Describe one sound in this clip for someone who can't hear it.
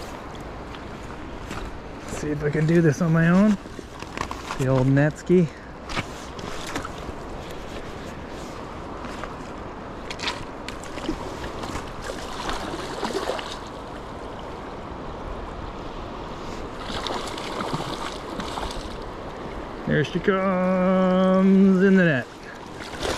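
A river flows and ripples steadily nearby.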